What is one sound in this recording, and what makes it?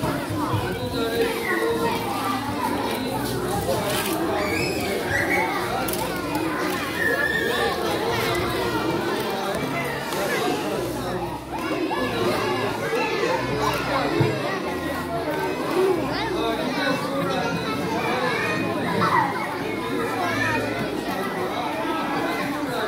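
A young woman speaks to a crowd through a microphone in a large echoing hall.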